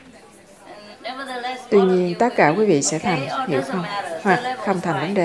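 A woman speaks calmly to a small audience.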